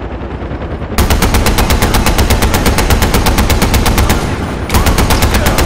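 A machine gun fires in long, rapid bursts.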